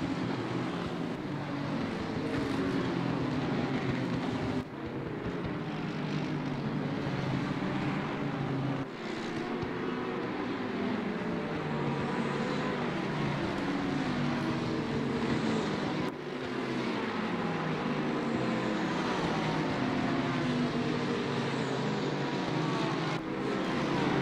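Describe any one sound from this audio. Racing car engines roar and whine, rising and falling in pitch as they shift gears.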